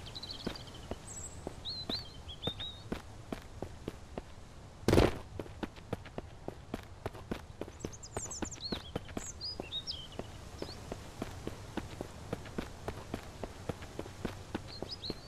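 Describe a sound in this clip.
Footsteps crunch steadily over dirt and undergrowth at a walking pace.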